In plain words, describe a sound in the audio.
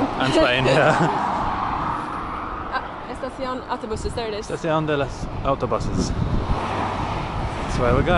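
Cars rush past on a road below.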